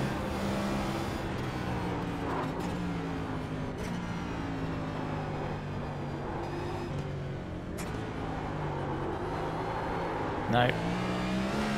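A race car engine roars steadily, its pitch rising and falling as it shifts gears.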